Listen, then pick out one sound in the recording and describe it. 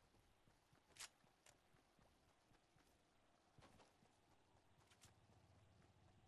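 Footsteps run quickly over grass and road.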